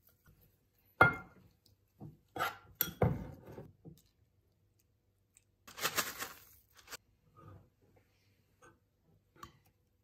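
A metal spoon clinks and scrapes against a bowl.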